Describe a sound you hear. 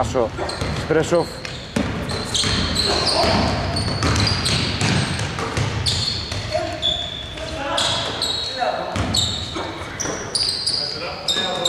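Sneakers squeak on a hardwood court in a large echoing hall.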